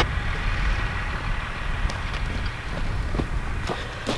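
Footsteps crunch on loose soil.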